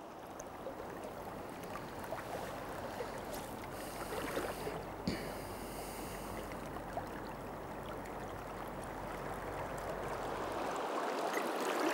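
Shallow water laps softly.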